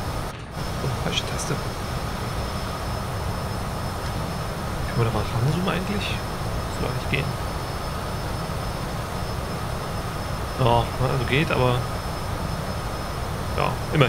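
A man speaks calmly into a close microphone.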